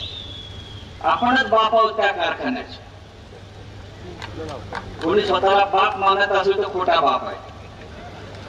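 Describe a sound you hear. A middle-aged man speaks forcefully into a microphone over a loudspeaker.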